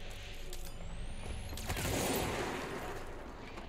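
A gun fires a rapid burst of shots.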